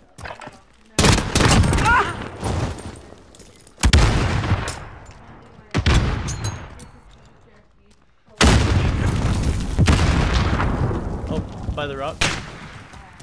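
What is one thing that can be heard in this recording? Loud explosions boom and rumble one after another.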